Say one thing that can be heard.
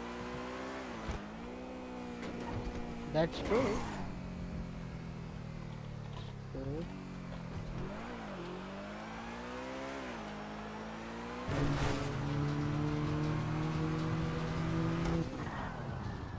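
A sports car engine roars and revs up and down as it shifts gears.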